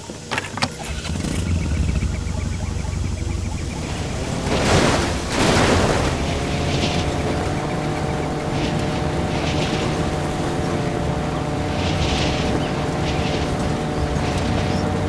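A quad bike engine starts up, revs and rumbles steadily while driving.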